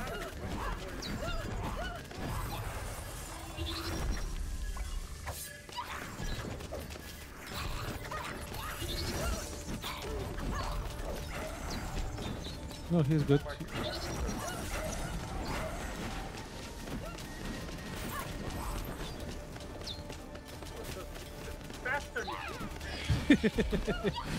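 Electronic blasts and impacts of a video game battle ring out.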